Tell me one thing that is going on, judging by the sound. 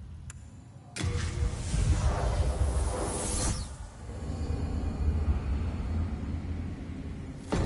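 A loud magical whoosh roars and rumbles.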